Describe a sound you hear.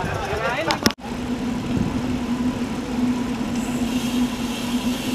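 Bicycle tyres hum steadily on the road.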